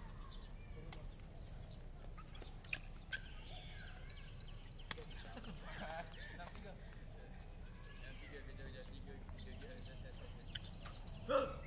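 Rackets strike a shuttlecock with sharp taps outdoors.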